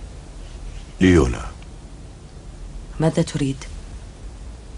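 An older man speaks quietly and briefly nearby.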